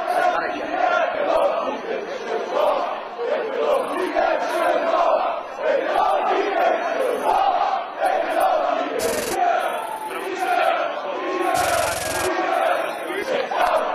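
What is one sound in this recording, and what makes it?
A crowd chants and sings loudly.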